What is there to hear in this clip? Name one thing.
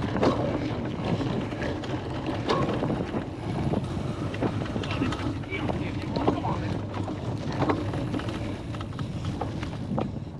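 Bicycle tyres bump and rattle over rough muddy grass.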